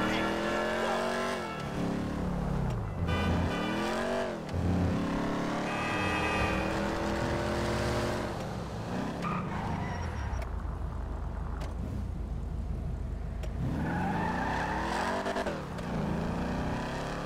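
A car engine revs up and down through the gears.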